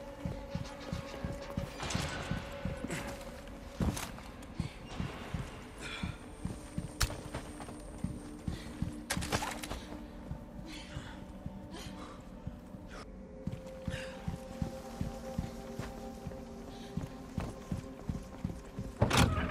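Footsteps thud steadily on wooden stairs and floors.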